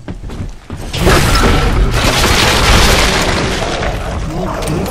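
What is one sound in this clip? A heavy machine gun fires in a long, loud burst.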